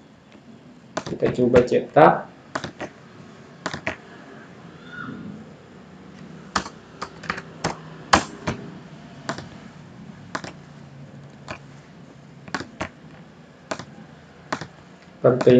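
A computer mouse clicks sharply, again and again.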